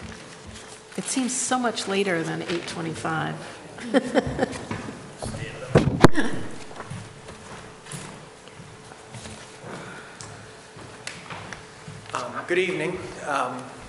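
A middle-aged woman speaks into a microphone, calmly and with pauses.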